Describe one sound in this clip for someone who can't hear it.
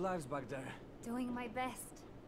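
A young woman answers quietly.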